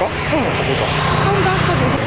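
A motor scooter rides past close by.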